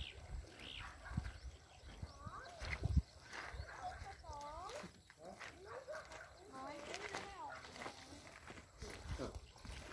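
Footsteps crunch on loose pebbles.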